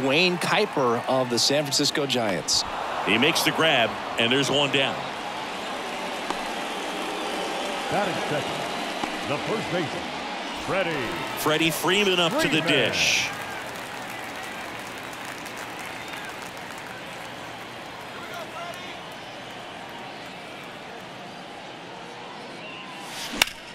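A large crowd murmurs and cheers in an open stadium.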